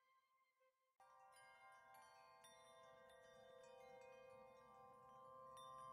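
Game music with bright chiming notes plays steadily.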